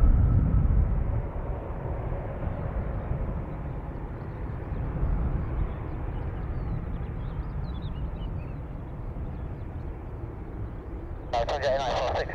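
Jet engines whine and rumble steadily as an airliner taxis past.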